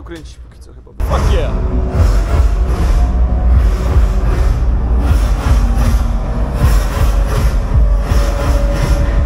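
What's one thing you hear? A band plays loud music in a large echoing hall.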